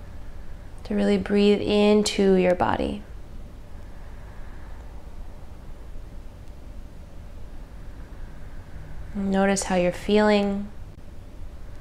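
A young woman chants a long, steady tone close by.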